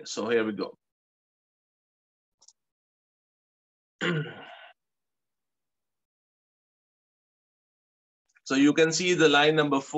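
A middle-aged man speaks calmly into a microphone, explaining, with pauses.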